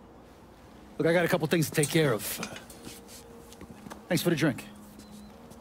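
A middle-aged man speaks calmly and close by.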